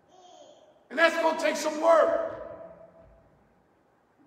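A man speaks loudly through a microphone in an echoing hall.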